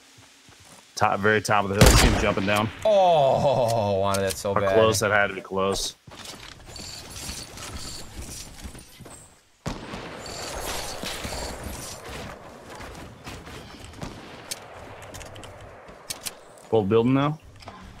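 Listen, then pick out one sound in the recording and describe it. Gunshots crack sharply in a video game.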